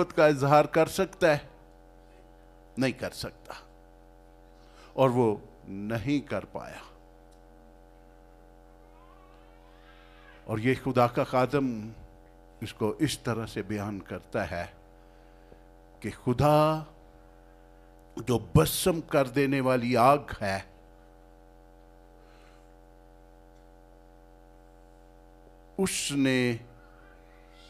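An elderly man preaches with feeling into a microphone, in bursts with pauses, heard through a loudspeaker.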